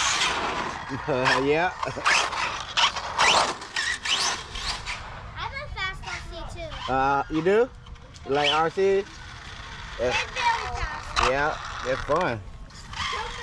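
Young children shout and talk excitedly nearby.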